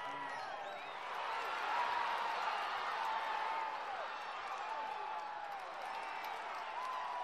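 A crowd of spectators cheers loudly.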